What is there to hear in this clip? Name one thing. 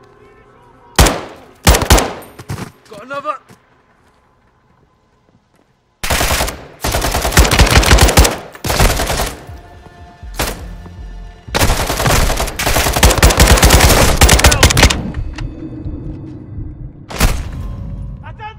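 A rifle fires in loud bursts of gunshots.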